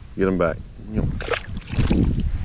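A small fish splashes into the water.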